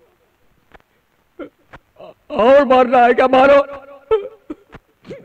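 A man speaks with anguish, his voice rising to a pleading cry.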